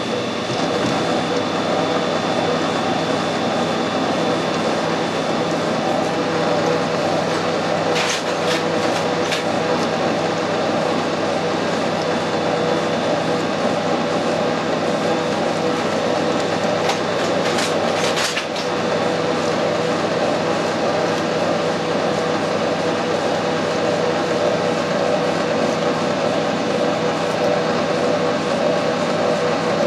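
A cutting tool scrapes and hisses as it cuts a thread into a metal rod.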